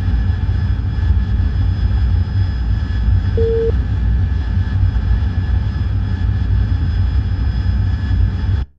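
A jet engine roars with a steady, deep rumble.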